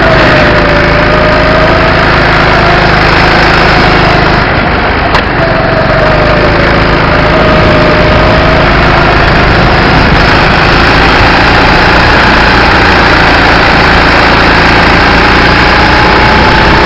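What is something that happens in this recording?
A small kart engine buzzes loudly close by, its pitch rising and falling as it speeds up and slows down.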